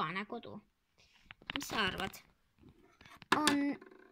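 A small plastic toy figure taps and clatters on a hard surface.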